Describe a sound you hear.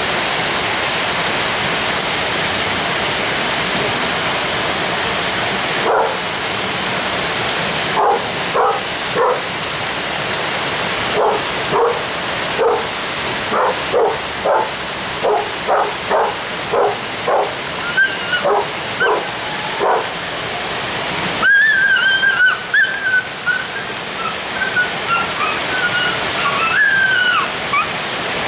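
A small waterfall rushes over rocks.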